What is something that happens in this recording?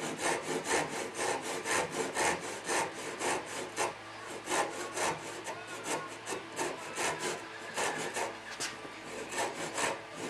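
A hand saw cuts into wood with quick back-and-forth strokes.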